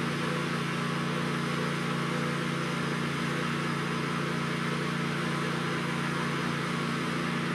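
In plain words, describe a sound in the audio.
A small petrol engine runs with a steady, loud roar.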